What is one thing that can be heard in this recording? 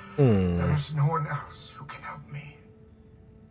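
A man speaks calmly through a crackly speaker.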